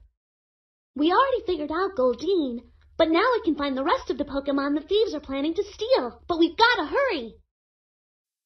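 A young girl speaks cheerfully and with animation.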